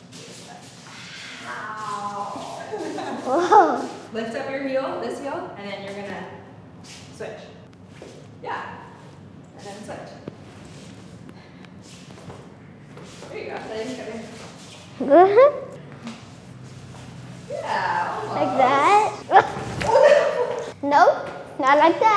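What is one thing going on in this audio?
A young woman talks and laughs with animation.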